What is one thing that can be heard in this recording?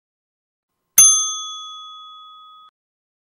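A bell chimes once and rings out.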